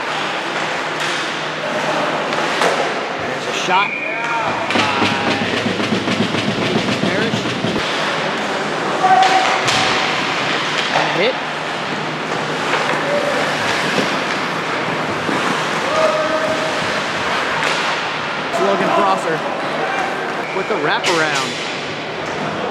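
Skates scrape and carve across ice in a large echoing rink.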